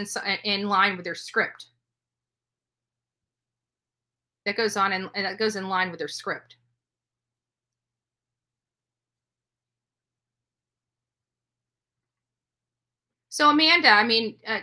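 A middle-aged woman speaks calmly into a close microphone, in short bursts with long pauses.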